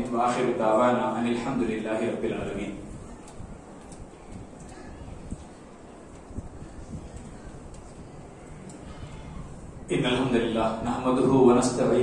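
A man speaks through a headset microphone in a calm, preaching tone, echoing in a hard room.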